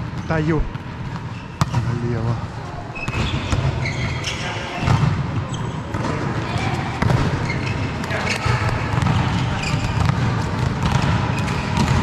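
Young men call out and shout to each other from across the hall.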